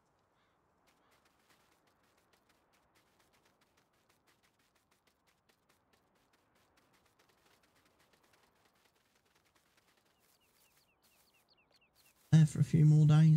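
Footsteps swish through grass at a steady walking pace.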